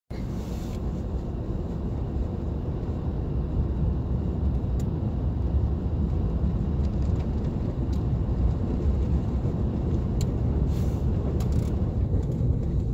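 Tyres hiss over packed snow.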